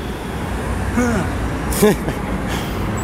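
A young man exclaims loudly close by.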